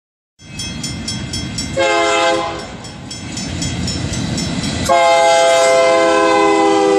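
A diesel locomotive engine rumbles as a train approaches.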